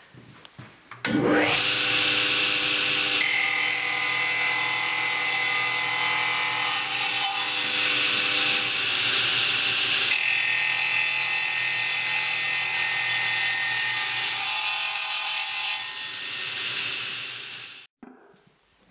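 A woodworking machine's motor starts up and runs with a loud whine.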